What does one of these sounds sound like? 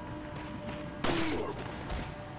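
A gunshot bangs once.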